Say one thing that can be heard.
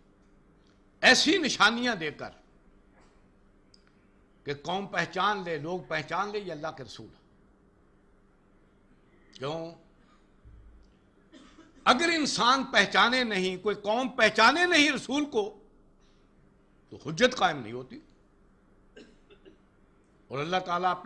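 An elderly man speaks calmly and slowly, close to a microphone, with pauses between phrases.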